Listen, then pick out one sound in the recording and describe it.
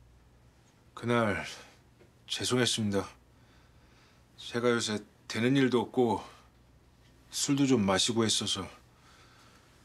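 A man speaks calmly and in a low voice, close by.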